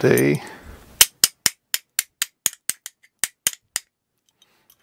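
A small tool clicks in quick, even ticks as a screw is tightened.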